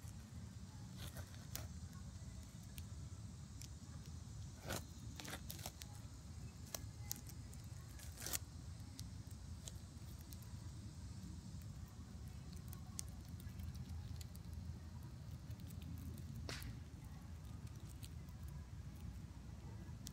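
Dry leaves rustle and crackle softly close by.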